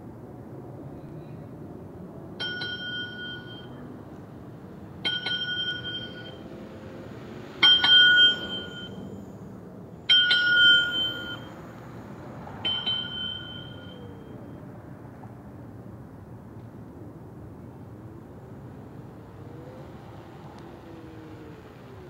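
A small electric wheel rolls over asphalt with a faint hum.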